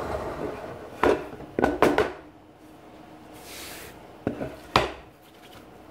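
A wooden block knocks against a workbench.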